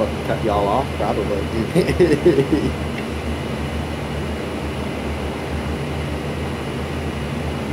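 A propeller engine drones steadily inside a cockpit.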